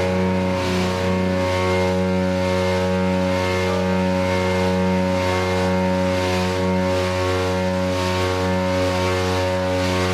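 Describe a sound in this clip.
Drums and cymbals crash and pound steadily.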